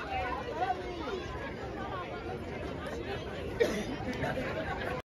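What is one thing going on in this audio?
A crowd of young people chatters and shouts outdoors.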